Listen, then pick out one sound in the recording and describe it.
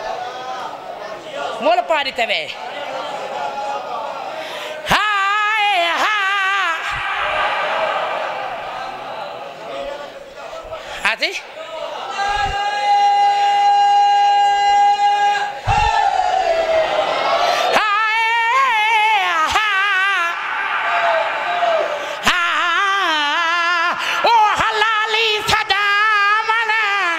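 A man chants loudly and with emotion into a microphone, heard through loudspeakers with echo.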